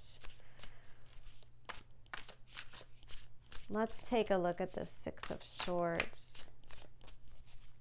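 Playing cards flick and slap together as a deck is shuffled by hand.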